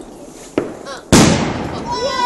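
A firework bursts with a single loud bang.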